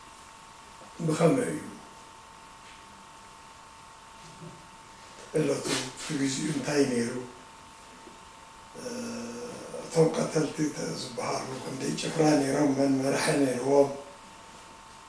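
An elderly man speaks calmly and close by, in bursts with pauses.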